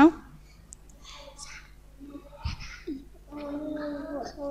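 A child speaks in a small voice.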